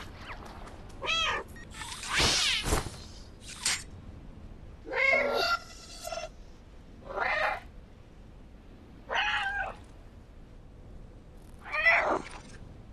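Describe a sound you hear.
A cat meows repeatedly.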